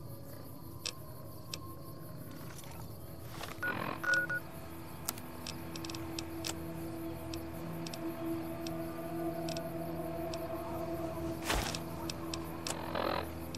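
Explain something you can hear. Interface clicks sound as menu items are selected.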